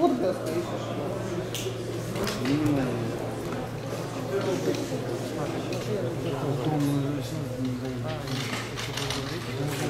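A woman talks calmly at a distance.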